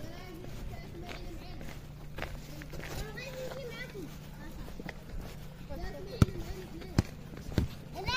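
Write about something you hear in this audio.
Children call out and shout while playing outdoors.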